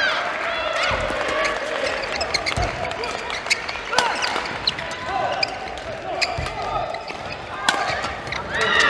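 Rackets strike a shuttlecock in a fast rally, echoing in a large hall.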